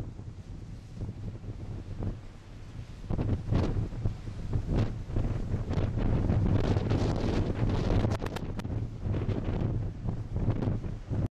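Waves churn and splash against a ship's hull below.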